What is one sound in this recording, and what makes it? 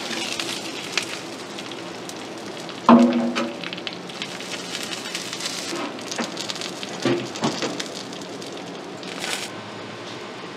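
Steam hisses from a pot.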